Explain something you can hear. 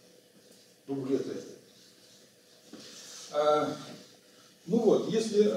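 An elderly man lectures calmly.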